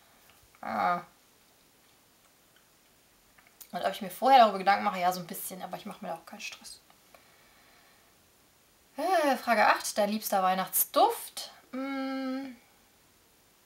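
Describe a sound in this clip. A young woman talks calmly and close by, with pauses.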